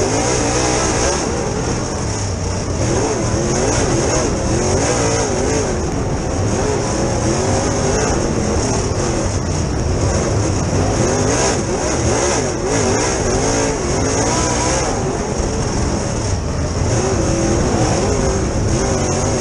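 Tyres rumble over a dirt track.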